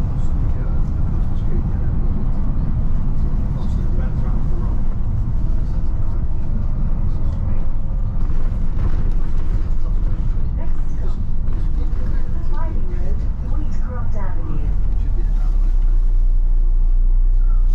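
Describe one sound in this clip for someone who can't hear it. A vehicle's engine rumbles steadily while driving.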